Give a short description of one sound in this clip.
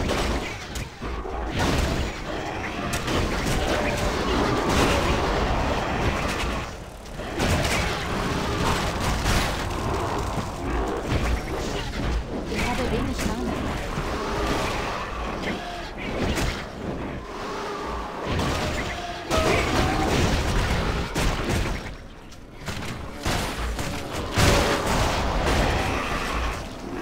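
Game combat sounds of blows and spells crash and clash rapidly.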